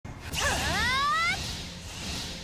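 A shimmering magical chime rises in pitch.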